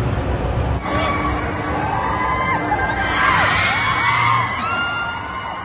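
Riders scream excitedly on a fairground ride.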